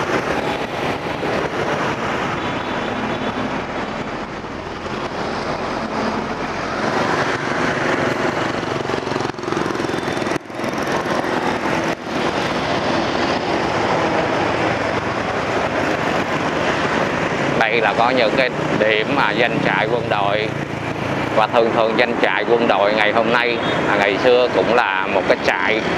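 Motorbike engines hum steadily in busy street traffic.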